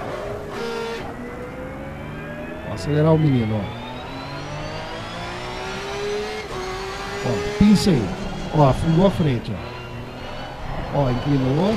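A racing car engine whines steadily as it revs up through the gears.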